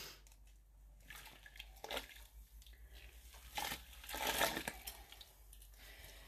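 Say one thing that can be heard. Water sloshes as wet yarn is lifted from a pot.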